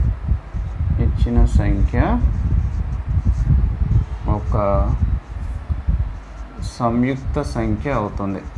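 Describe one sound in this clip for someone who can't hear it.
A man explains calmly and steadily, heard up close.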